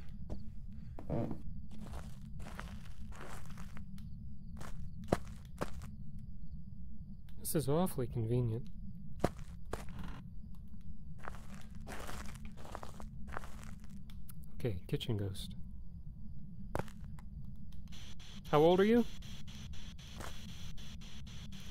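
Footsteps creak and thud slowly on a wooden floor.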